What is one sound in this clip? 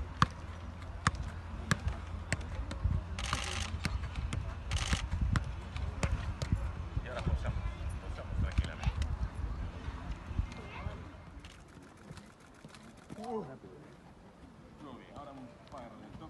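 A football thuds repeatedly against a player's foot as it is juggled.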